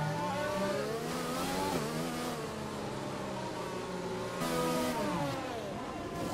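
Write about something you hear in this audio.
A racing car engine roars and shifts through gears, its pitch rising and dropping.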